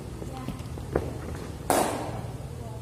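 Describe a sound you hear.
A cricket bat strikes a leather ball with a sharp crack.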